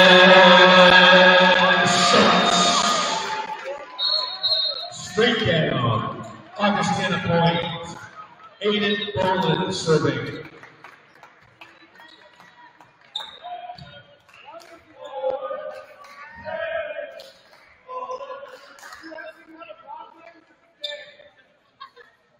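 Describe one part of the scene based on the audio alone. Young men shout and call out to each other in a large echoing gym.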